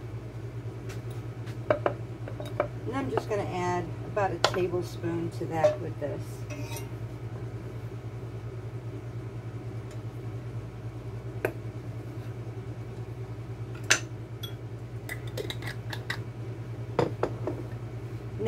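Utensils knock and clatter on a counter.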